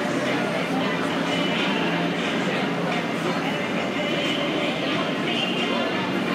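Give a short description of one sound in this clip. A crowd of people chatters nearby in a large echoing hall.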